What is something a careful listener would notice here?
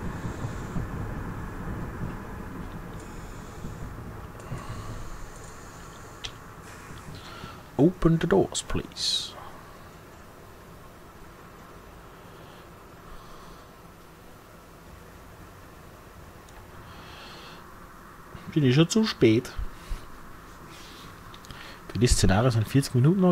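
A diesel train engine hums steadily.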